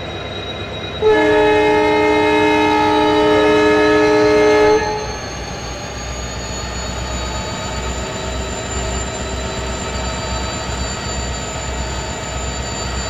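Freight wagons rumble and creak along the rails.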